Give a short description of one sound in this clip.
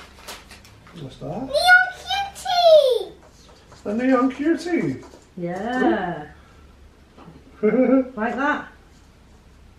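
A young girl speaks excitedly and close by.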